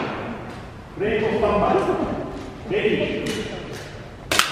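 A man talks in a large echoing hall.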